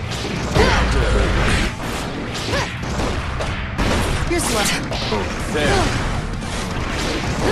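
Punches and kicks land with heavy, sharp impacts.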